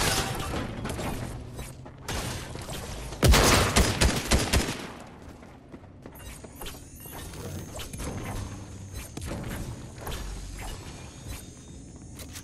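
A pickaxe strikes metal with sharp clangs.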